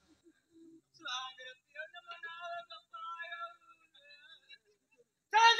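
A second man talks through a loudspeaker.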